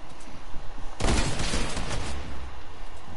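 A structure shatters with a loud crash and debris clatters.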